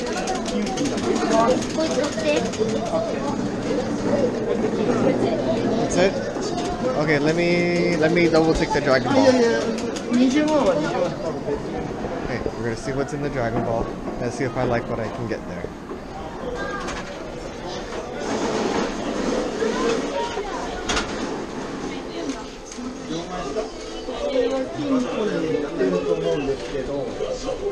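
A crowd of people chatter nearby in an echoing indoor space.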